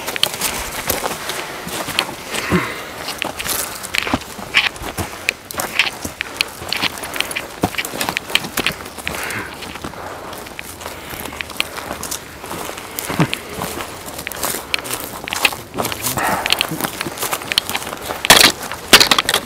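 Dry branches rustle and snap as people push through brush.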